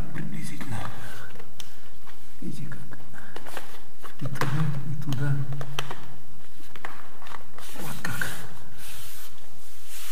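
Plastic trim creaks and clicks as a hand presses it against the wall.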